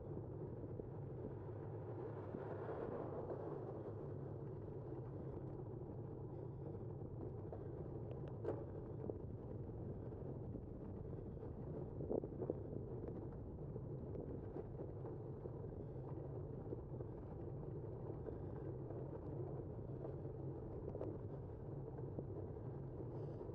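Tyres hum as they roll over asphalt.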